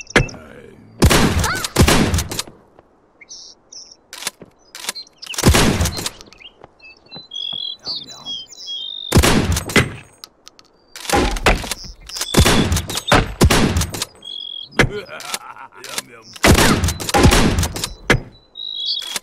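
Gunshots fire in quick, loud bursts.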